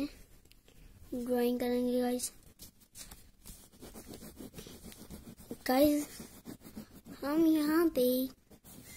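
A crayon scratches softly across paper.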